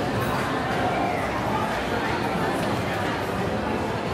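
Footsteps pass close by on a hard floor.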